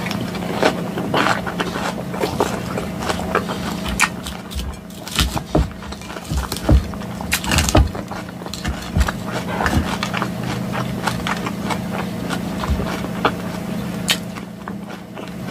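A woman chews crunchy salad close to a microphone.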